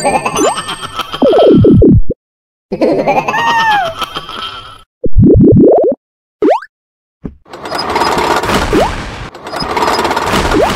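Video game music plays with bouncy electronic tones.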